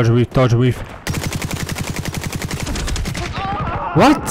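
Rapid gunfire rattles in a game.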